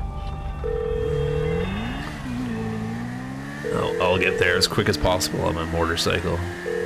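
A motorcycle engine hums and revs up as the bike speeds along.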